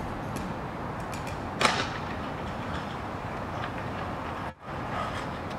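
A scooter grinds and scrapes along a metal rail.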